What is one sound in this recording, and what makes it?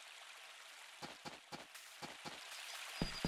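Quick footsteps patter on a dirt path.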